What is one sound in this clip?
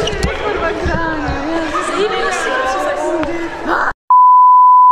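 Young women talk and laugh together in an echoing hall.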